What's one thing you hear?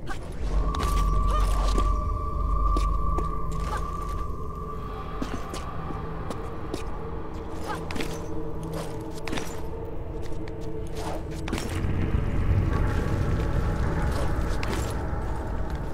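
Hands grab and scrape against a stone ledge.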